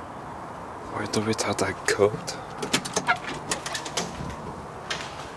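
A door handle rattles and a latch clicks.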